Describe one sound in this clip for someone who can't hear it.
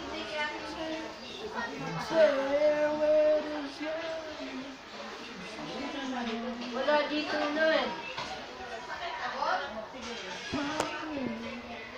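Children shout and chatter outdoors.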